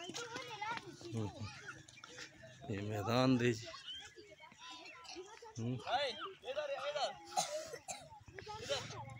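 Children chatter and call out nearby outdoors.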